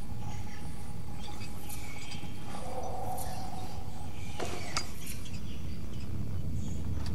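Many rats squeak and scurry all around.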